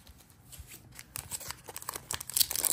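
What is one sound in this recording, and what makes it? A foil wrapper crinkles in a person's hands.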